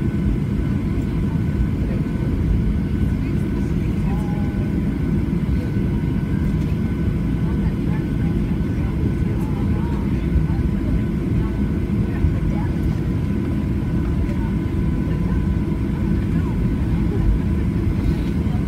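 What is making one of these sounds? A jet engine hums and rumbles steadily from inside an aircraft cabin as the plane taxis.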